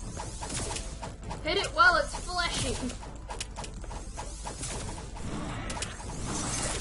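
Sharp electronic hits and zaps from a video game sound repeatedly.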